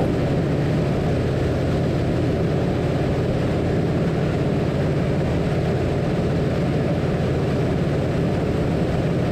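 A small plane's propeller engine drones loudly and steadily.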